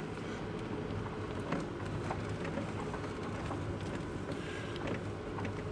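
Tyres crunch and rattle over a gravel road.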